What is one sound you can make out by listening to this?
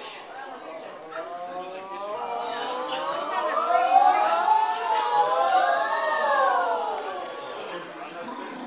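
A group of women sing together nearby, swelling louder in the middle and then softening.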